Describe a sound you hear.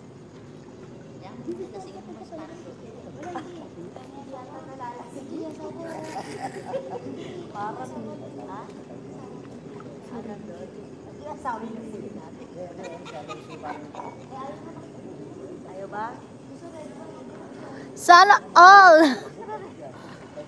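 Young women chat and laugh close by.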